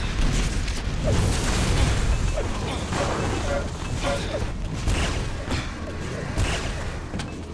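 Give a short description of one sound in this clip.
Explosions boom with heavy low rumble.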